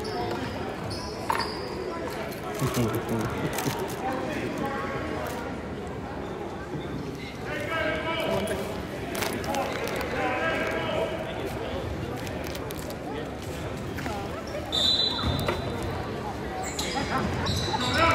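A crowd chatters and cheers in a large echoing gym.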